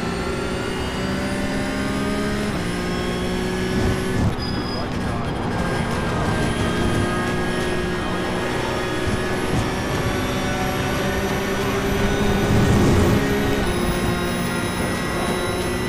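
A racing car engine roars steadily, its pitch shifting as the car changes gear.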